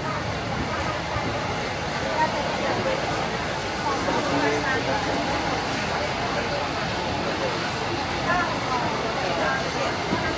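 Many voices of men and women chatter in a busy crowd nearby.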